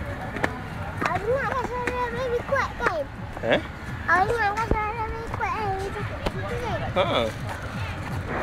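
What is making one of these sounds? A young girl talks close by in a high voice.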